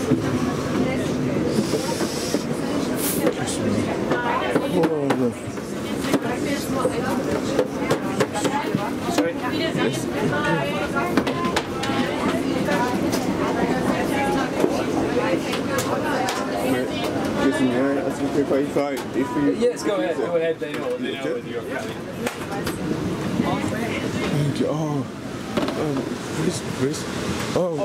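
Adult men and women chatter nearby.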